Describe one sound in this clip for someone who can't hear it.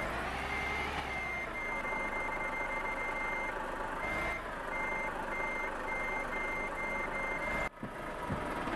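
A truck engine rumbles at idle.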